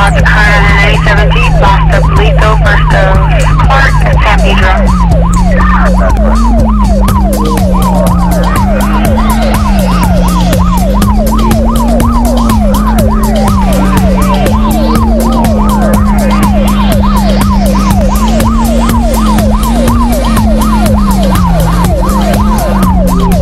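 A police siren wails in fast, rising and falling whoops.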